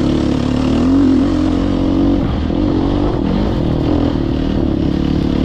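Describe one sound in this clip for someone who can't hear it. A motorcycle engine hums steadily close by.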